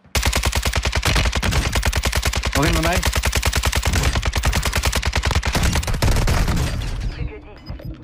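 Rapid automatic gunfire rattles loudly.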